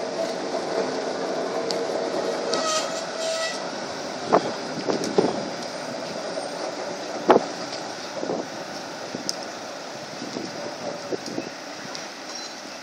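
A tram rumbles and hums as it rolls around a curve.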